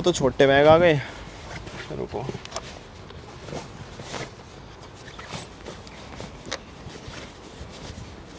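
Bags thump and rustle as they are loaded into a car boot.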